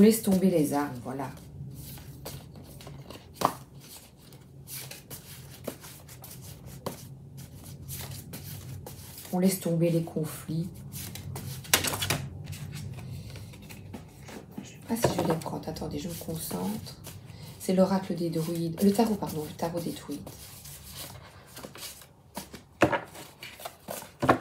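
Playing cards riffle and slap together as they are shuffled by hand.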